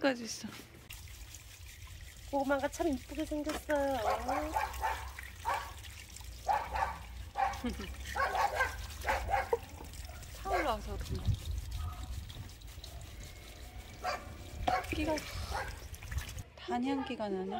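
Hands rub and scrub sweet potatoes under running water.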